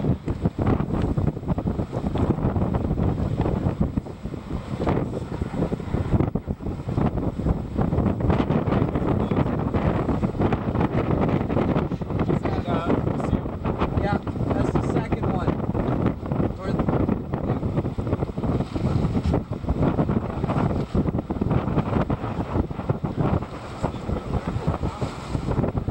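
Choppy waves splash against a small boat.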